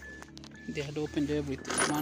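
Metal sockets clink together in a plastic case.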